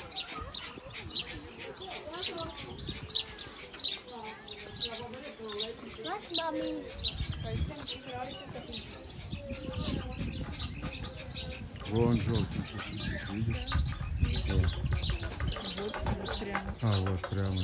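Small birds chirp and twitter rapidly nearby.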